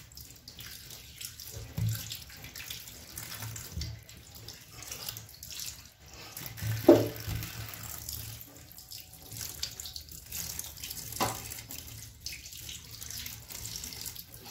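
Hands rub and squelch slippery eels in a plastic basket under water.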